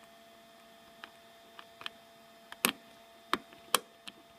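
A plastic connector clicks and scrapes against a port.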